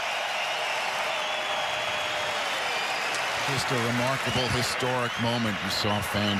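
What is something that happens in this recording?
A crowd of fans claps their hands.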